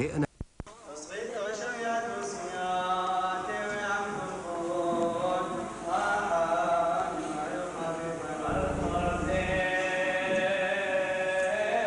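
A man chants in a deep, steady voice.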